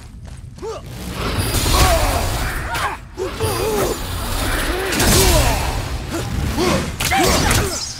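Metal blades clash and strike in a fast fight.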